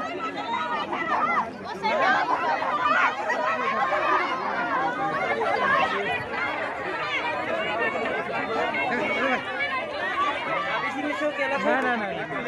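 Men and women shout loudly in a scuffle close by.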